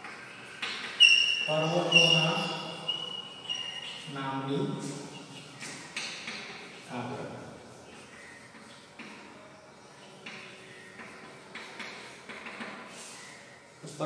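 Chalk squeaks and scratches on a board.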